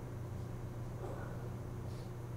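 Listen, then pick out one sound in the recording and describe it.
A man murmurs quietly nearby.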